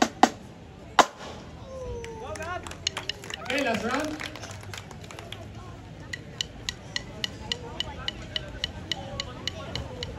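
A snare drum is struck with sticks in a quick, steady beat.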